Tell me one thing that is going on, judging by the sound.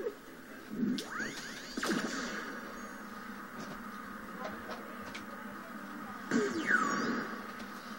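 Magical whooshing effects sweep up and down in pitch.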